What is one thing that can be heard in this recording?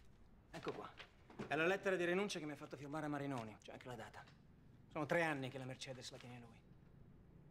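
A second man answers in a firm voice nearby.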